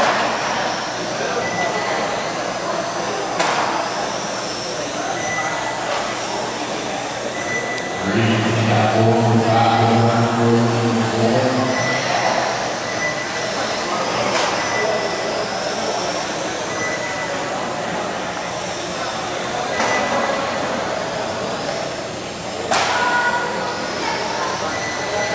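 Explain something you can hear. Small electric model cars whine as they race around a track in a large echoing hall.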